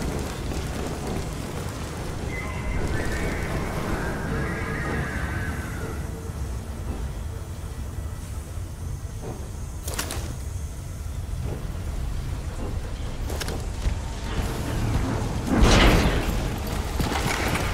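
A low, steady machine hum fills an echoing metal corridor.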